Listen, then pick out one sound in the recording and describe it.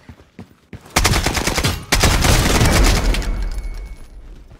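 A shotgun fires loud blasts at close range.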